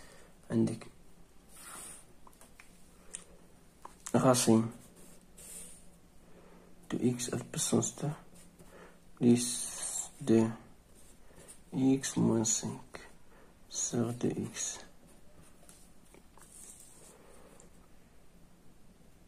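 A pen writes on paper.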